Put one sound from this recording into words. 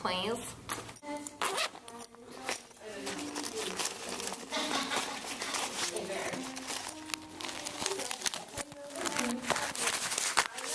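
Cloth rustles as a hand rummages in a pocket.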